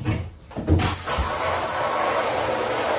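Water sprays from a shower head.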